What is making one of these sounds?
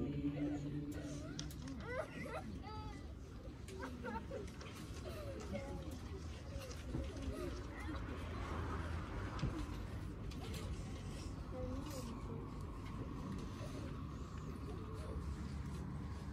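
Men and women talk quietly among themselves nearby.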